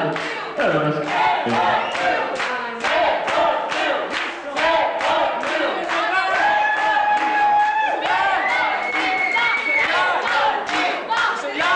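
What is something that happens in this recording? A crowd claps along in rhythm.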